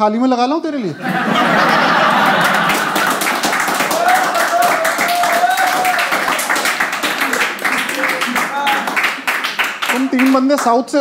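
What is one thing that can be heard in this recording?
An audience laughs and claps loudly.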